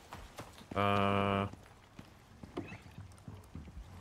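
Wooden cabinet doors creak open.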